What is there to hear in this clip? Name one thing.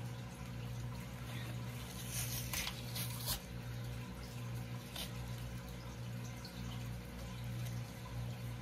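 A thin membrane is peeled off a rack of raw pork ribs.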